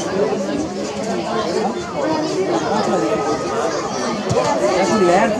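A crowd of adults and children shout and cheer from the sidelines outdoors.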